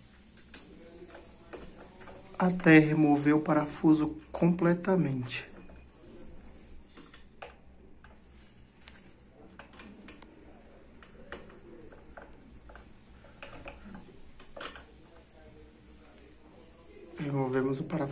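A small metal key clicks and scrapes against a lock fitting.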